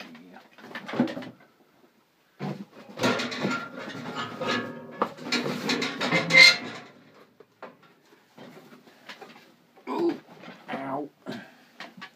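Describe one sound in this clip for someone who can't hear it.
Clothing rustles and brushes close to the microphone.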